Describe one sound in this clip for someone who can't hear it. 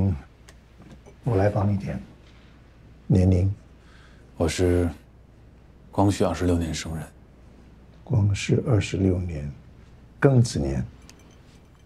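A younger man answers quietly and calmly.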